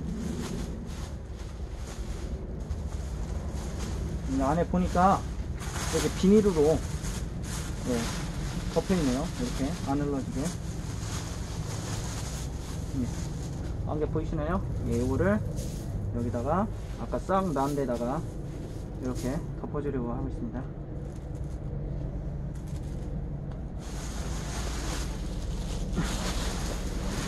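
Grain rustles and shifts inside a sack.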